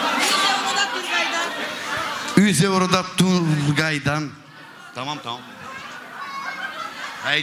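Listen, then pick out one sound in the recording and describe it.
A crowd chatters in the background of a large room.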